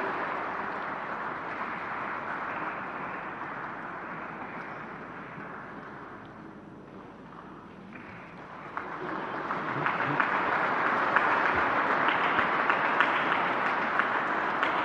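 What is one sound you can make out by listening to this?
A large crowd applauds, fading and then swelling into loud clapping.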